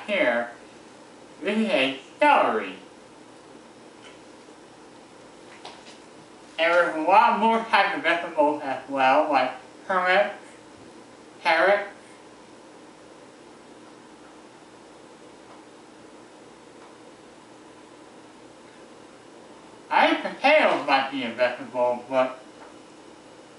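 A man talks calmly in bursts, close by in a small room.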